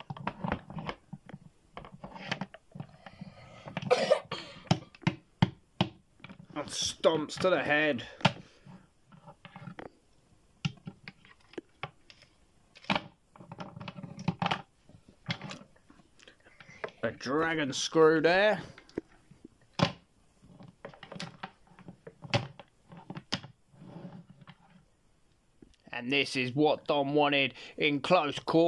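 Plastic toy figures knock and tap against each other.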